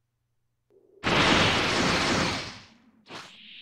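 A powerful energy blast bursts with a loud roar.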